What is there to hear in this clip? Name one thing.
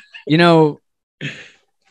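A man greets cheerfully over an online call.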